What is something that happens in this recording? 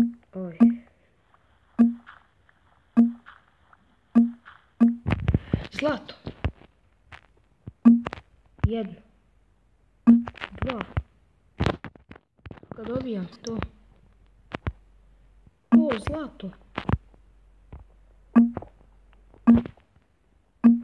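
A pickaxe chips at stone blocks with short, repeated crunching knocks.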